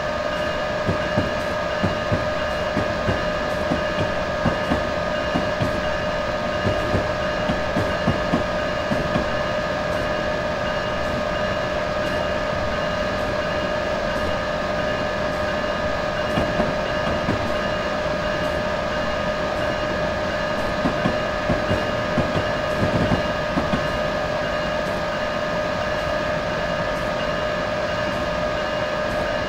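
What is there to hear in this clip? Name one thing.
A train's electric motor hums steadily as it runs along the track.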